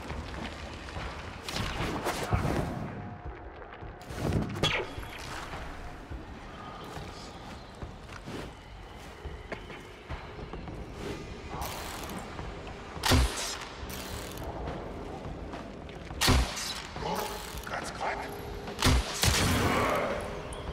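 Footsteps run across a metal floor.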